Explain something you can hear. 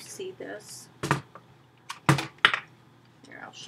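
A laptop rustles and knocks as it is handled.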